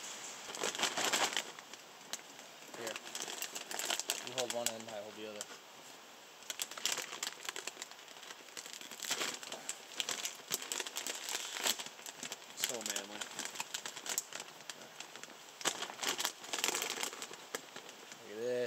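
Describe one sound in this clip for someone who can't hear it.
A plastic snack bag crinkles in someone's hands.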